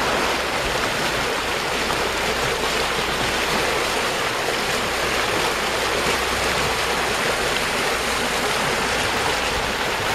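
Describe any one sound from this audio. A shallow river rushes and splashes loudly over rocks close by.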